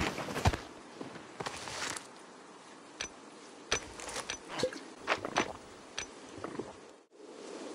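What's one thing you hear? Short menu clicks tap several times.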